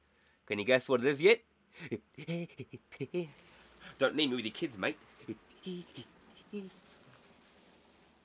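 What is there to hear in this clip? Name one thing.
Bubble wrap crinkles between hands.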